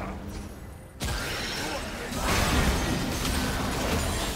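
Game combat effects whoosh and crackle.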